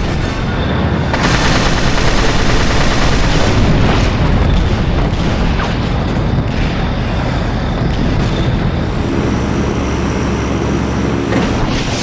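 Aircraft engines roar steadily.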